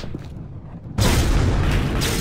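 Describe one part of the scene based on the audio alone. A loud sizzling roar bursts out as something plunges into lava.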